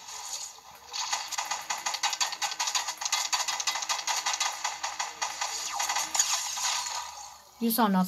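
Rapid gunshots crackle from a video game through a loudspeaker.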